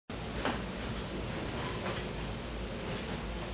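Footsteps sound softly on a hard floor.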